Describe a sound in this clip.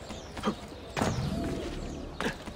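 A heavy thud lands on the ground.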